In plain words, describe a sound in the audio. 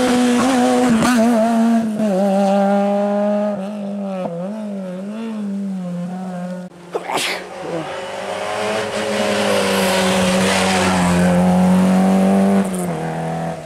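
A rally car roars past close by.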